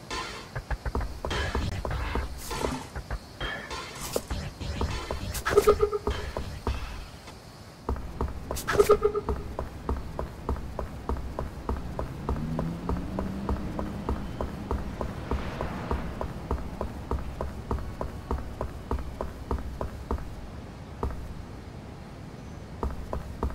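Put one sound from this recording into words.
Quick light footsteps tap steadily on pavement.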